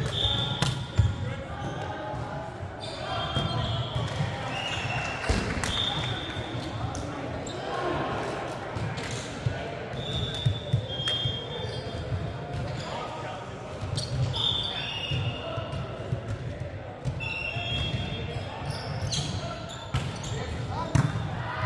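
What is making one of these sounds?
A volleyball is struck with a hollow thump.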